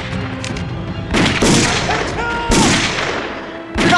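A pistol fires several shots nearby.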